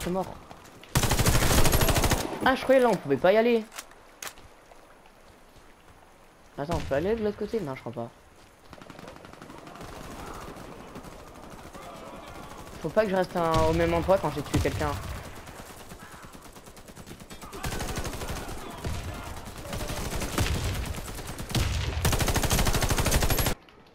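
An automatic rifle fires rapid bursts of shots.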